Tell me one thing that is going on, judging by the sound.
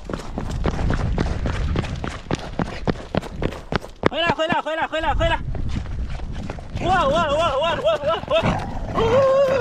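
A dog's paws patter quickly on asphalt.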